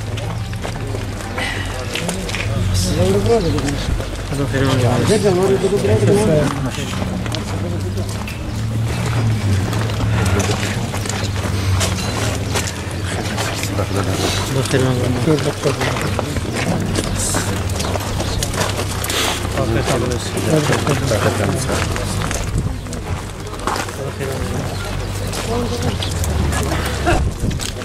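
Men talk nearby over one another in a small outdoor crowd.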